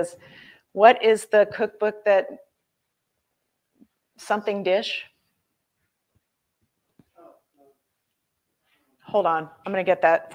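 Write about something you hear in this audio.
A woman speaks calmly into a close microphone, pausing between phrases.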